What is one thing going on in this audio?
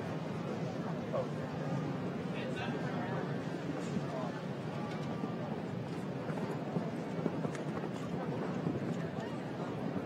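Horse hooves thud on soft sand.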